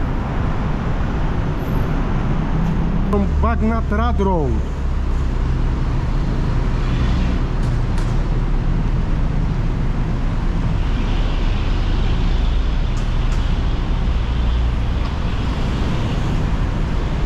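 Traffic rumbles steadily from a road below, outdoors.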